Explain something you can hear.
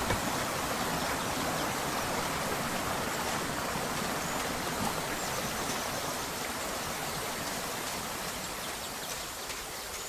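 Water in a stream flows and babbles steadily.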